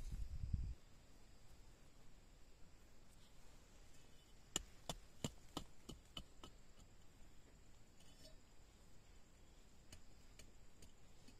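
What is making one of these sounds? Hands pat and press loose soil around a seedling.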